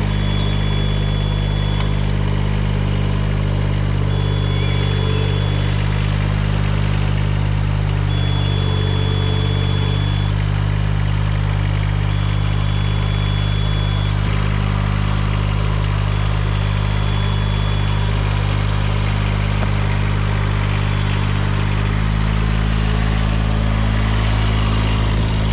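A diesel engine runs steadily up close.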